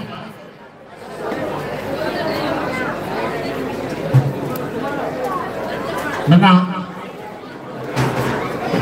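A crowd murmurs and chatters.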